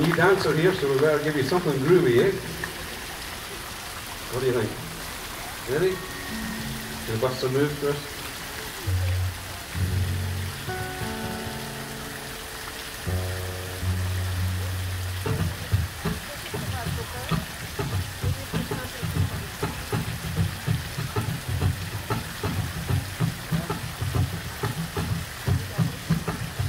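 Guitars play a song outdoors.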